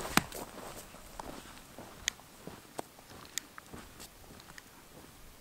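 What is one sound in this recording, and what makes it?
Trekking poles click against stony ground.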